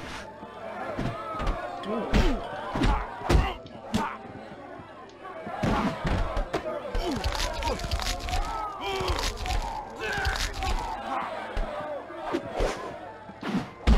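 Punches and kicks land with heavy thuds in a fighting video game.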